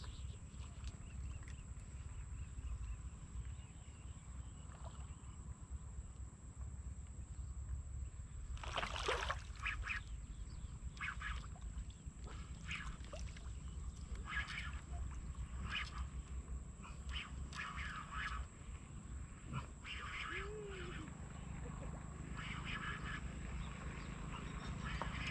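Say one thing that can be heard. Water splashes and swirls as a man wades through it.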